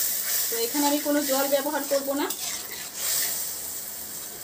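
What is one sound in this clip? A metal spoon scrapes and stirs a thick sauce in a pan.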